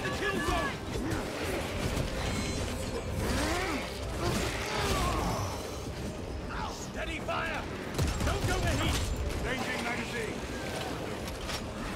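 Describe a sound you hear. Gunfire and explosions rumble from a video game.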